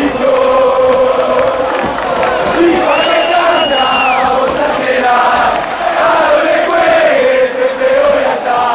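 A large crowd of fans sings and chants loudly in an open stadium.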